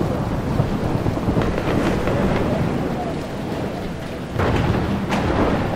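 Rain pours steadily outdoors.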